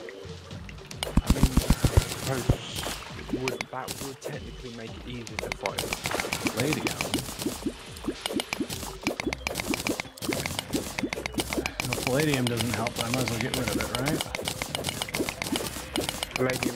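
Rapid digging clicks and thuds from a game play in quick succession.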